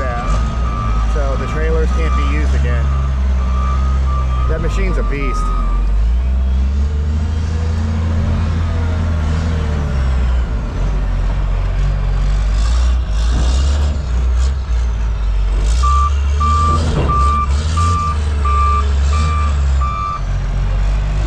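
A reversing alarm beeps steadily in quick pulses.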